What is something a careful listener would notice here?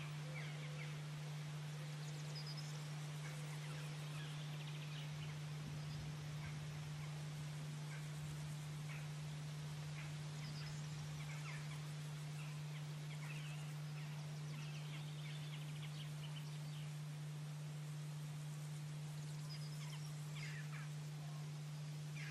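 A bird chirps and calls from the trees.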